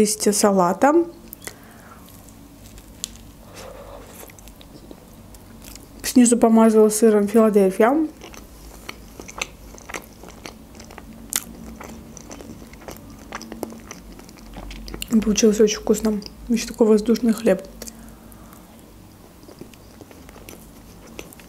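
A young woman bites and chews a sandwich close to a microphone.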